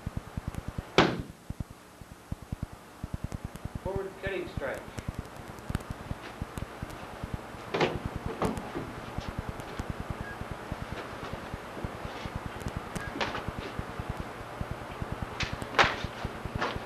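Strikes thump against a padded shield.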